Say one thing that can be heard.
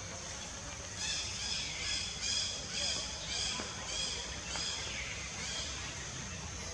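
A monkey gives a run of short, quick calls.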